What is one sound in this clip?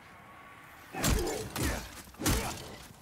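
A sword swings and strikes with loud whooshes.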